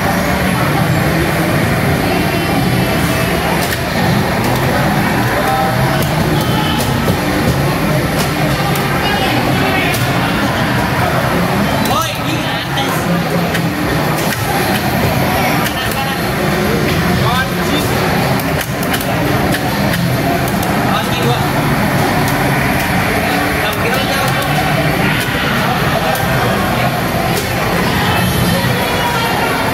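Racing games roar loudly with engine sounds from loudspeakers.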